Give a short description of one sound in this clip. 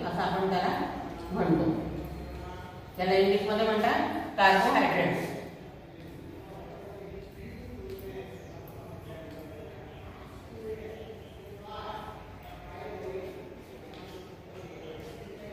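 A middle-aged woman speaks clearly, as if explaining.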